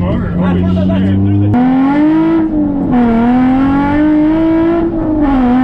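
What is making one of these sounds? A car engine revs loudly inside the cabin, rising and falling as gears change.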